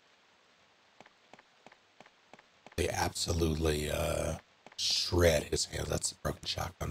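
Footsteps tap on stone.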